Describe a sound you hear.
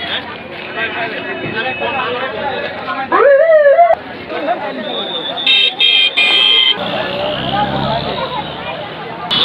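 A crowd of men talk and call out excitedly outdoors nearby.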